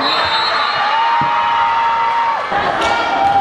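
A referee blows a long whistle.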